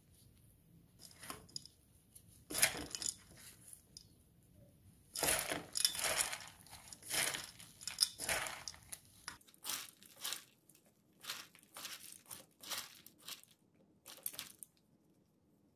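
Gloved hands mix food in a metal bowl with rustling and crinkling sounds.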